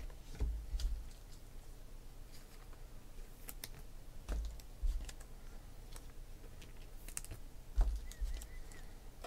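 A hand handles a thin card with soft taps and rustles close by.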